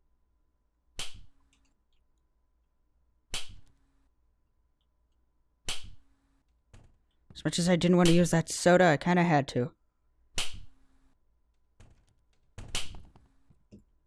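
Footsteps thud on a hard floor at a slow, even pace.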